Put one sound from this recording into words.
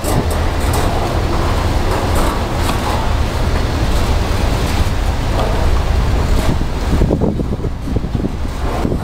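A long freight train rumbles past close by, its wheels clattering on the rails.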